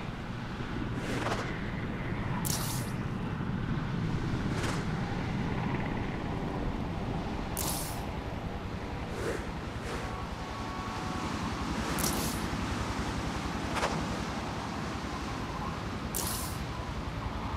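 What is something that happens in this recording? A web line shoots out with a sharp whoosh, again and again.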